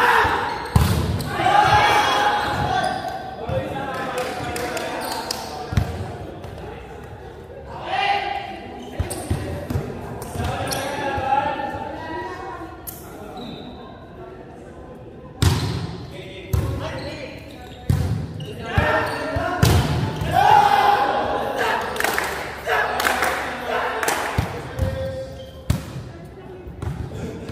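Sneakers squeak on the hard court floor.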